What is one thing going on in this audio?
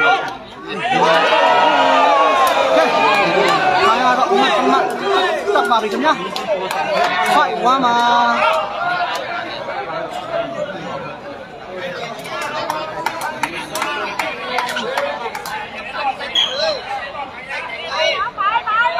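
Many men chatter and call out nearby.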